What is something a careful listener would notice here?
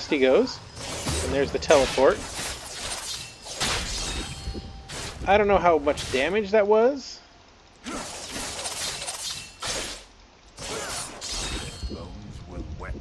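Sharp sword strikes and magic blasts burst in quick succession.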